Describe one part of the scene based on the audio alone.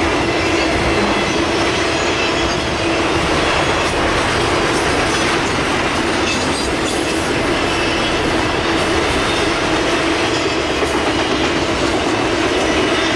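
A long freight train rumbles past steadily, its wheels clattering on the rails.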